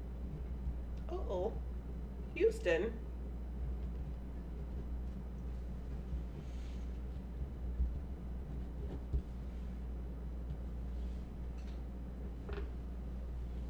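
A woman speaks briefly through a microphone, close by, in a few short bursts.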